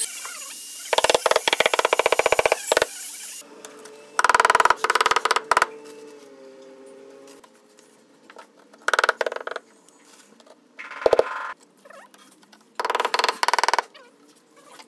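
A rubber mallet taps rapidly on a tile in short bursts.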